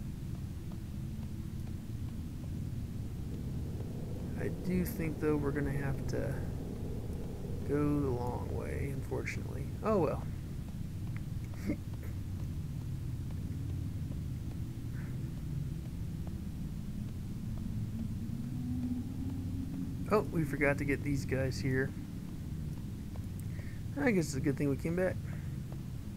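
Footsteps patter steadily on a stone floor.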